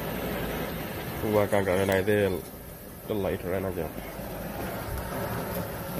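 A gas burner roars steadily.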